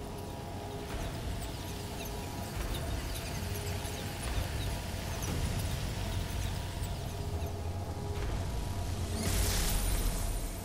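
Sparkling energy crackles and hisses, swelling loudly near the end.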